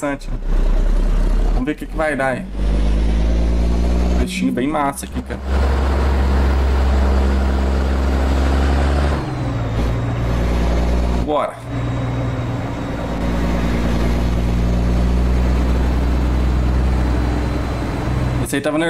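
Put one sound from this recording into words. A truck engine drones steadily, rising and falling in pitch.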